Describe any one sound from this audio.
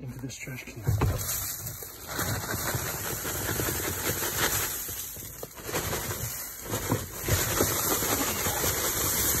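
Dry leaves and grass clippings slide and pour into a plastic bin.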